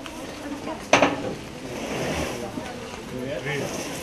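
A cardboard box scrapes and thumps as men slide it off a truck.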